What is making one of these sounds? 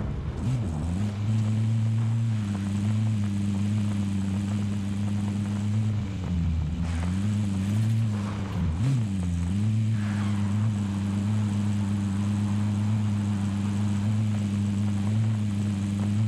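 Tyres crunch over dirt and gravel.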